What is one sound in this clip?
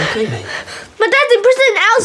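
A boy shouts loudly and frantically, close by.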